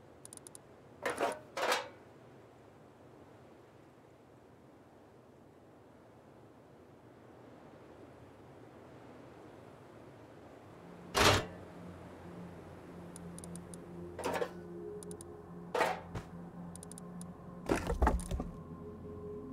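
Short game interface clicks sound now and then as menus open and close.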